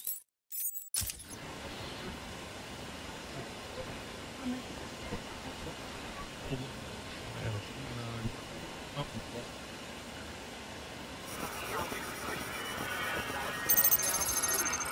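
Radio static hisses and crackles softly.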